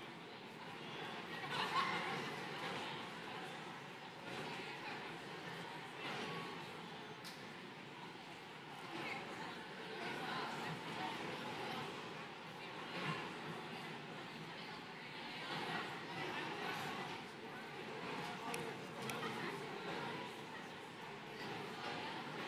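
A large crowd chatters steadily in a big echoing hall.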